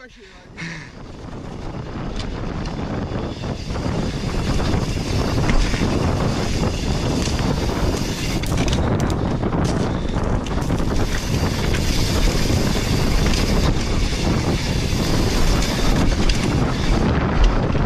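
Bike tyres rumble and rattle over loose dirt and stones.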